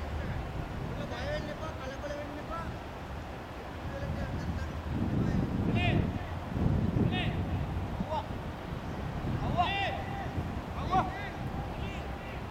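Men talk quietly to each other outdoors, some distance away.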